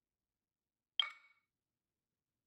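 A short, bright menu chime sounds once.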